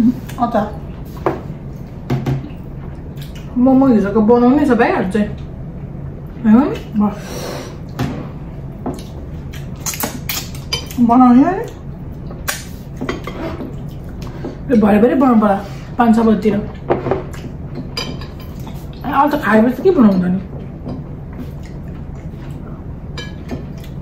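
Fingers mash food on a plate with soft clicks.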